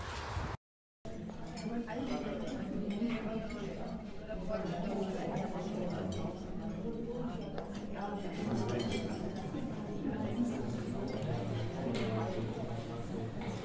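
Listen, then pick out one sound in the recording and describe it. Several people chat quietly in a room.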